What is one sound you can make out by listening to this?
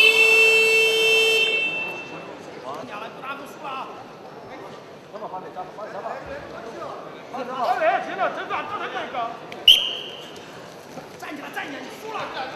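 A large crowd murmurs and shouts in an echoing hall.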